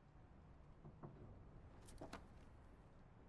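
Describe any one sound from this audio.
A paper page turns.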